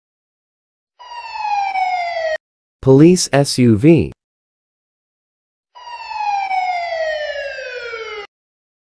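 A police siren wails in falling sweeps.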